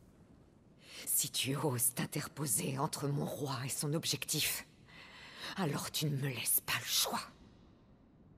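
A young woman speaks in a low, threatening voice, close by.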